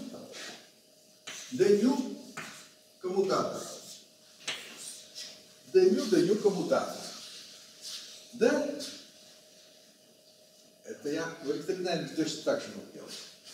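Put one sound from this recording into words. An elderly man lectures calmly in a room with a slight echo.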